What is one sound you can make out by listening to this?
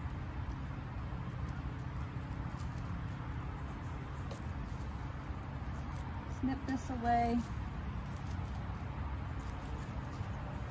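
Weeds rustle and tear as they are pulled from soil by hand.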